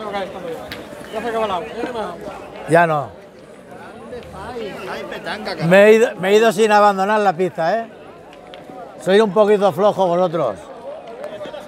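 A man nearby talks loudly and with animation.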